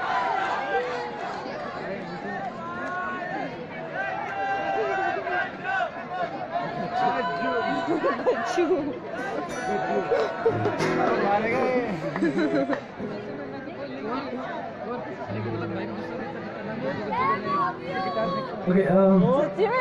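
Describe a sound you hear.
A man sings into a microphone through loudspeakers in the open air.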